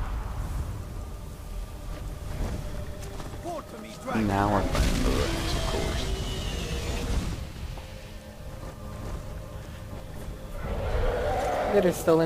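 A horse's hooves thud on the ground as it gallops.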